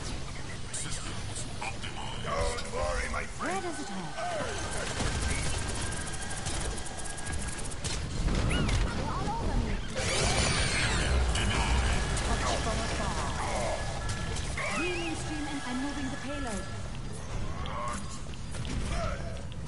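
Rapid game gunfire and energy blasts crackle.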